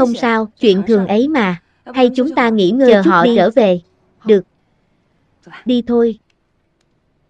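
A young woman speaks softly and warmly, close by.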